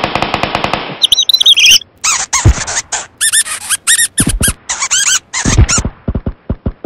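A mouse squeaks shrilly several times.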